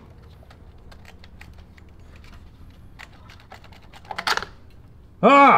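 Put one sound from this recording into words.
Small plastic engine parts click and rattle as hands handle them.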